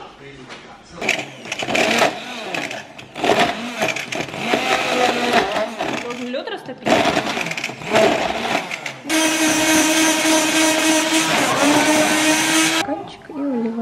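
A hand blender whirs loudly in a jug.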